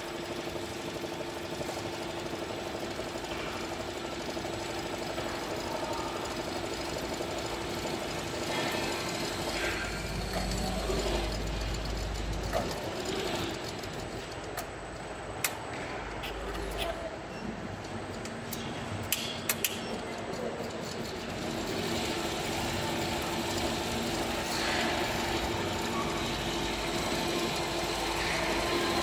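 An embroidery machine hums and clatters steadily as its needles stitch rapidly.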